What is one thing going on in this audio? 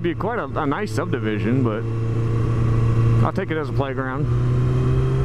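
A motorcycle engine revs up and down through gear changes.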